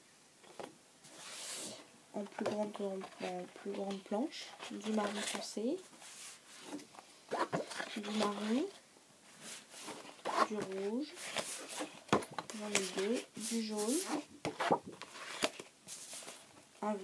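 Cardboard sheets rustle and scrape as they are handled.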